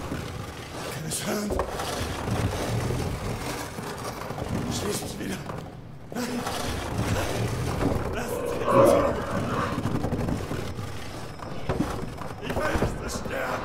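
A wooden barrel rolls and rumbles across a stone floor.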